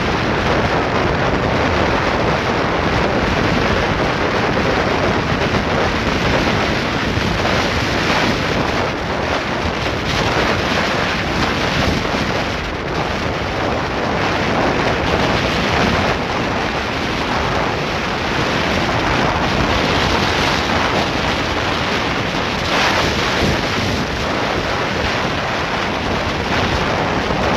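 Wind buffets loudly against a moving motorcycle.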